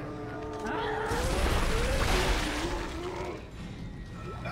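An energy weapon fires with a burst of crackling noise.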